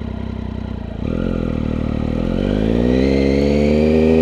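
A motorcycle engine revs up and accelerates with rising pitch.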